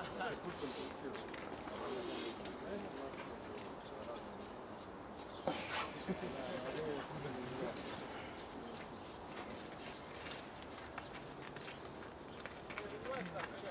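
Men call out to each other across an open outdoor pitch.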